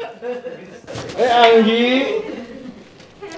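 An elderly woman laughs loudly and happily.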